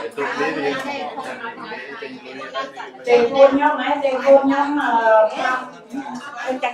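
A woman speaks through a microphone and loudspeaker.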